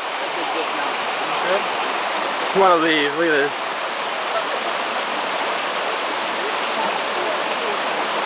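A shallow stream of water rushes steadily over rocks.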